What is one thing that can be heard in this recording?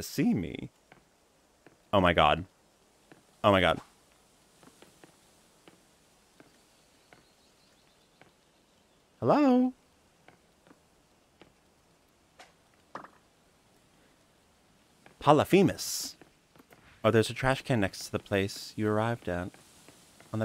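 A young man talks with animation into a microphone, close by, in short bursts.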